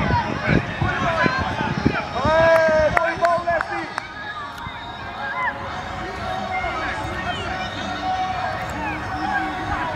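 Young players shout and call out across an open outdoor pitch.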